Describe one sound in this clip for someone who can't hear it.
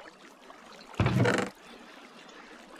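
A wooden chest creaks open in a game.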